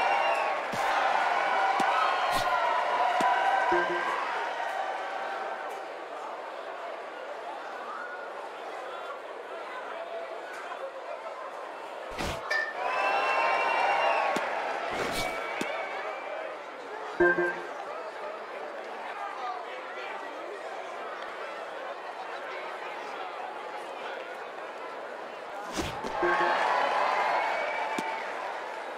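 A crowd cheers and roars in a large stadium.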